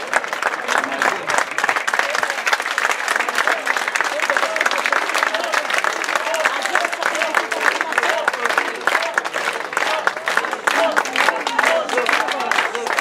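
A crowd of men and women cheer and chatter.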